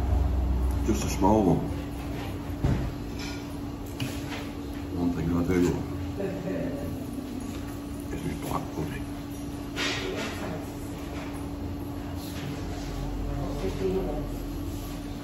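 An older man talks calmly, close to the microphone.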